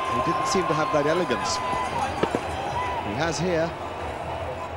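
A large crowd cheers loudly.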